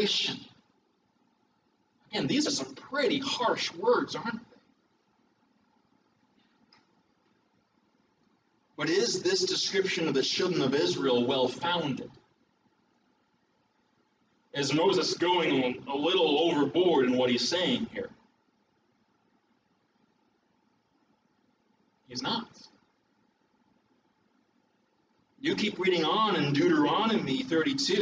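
A middle-aged man speaks with animation through a microphone, pausing often between phrases.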